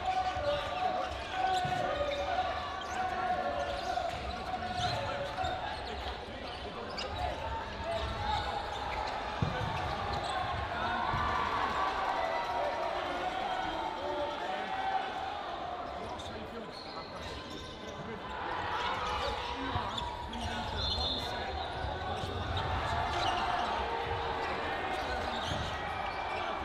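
Many voices chatter and echo through a large indoor hall.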